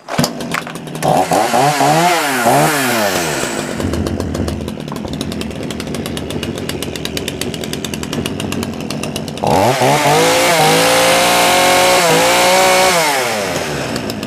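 A chainsaw engine revs up and down in bursts.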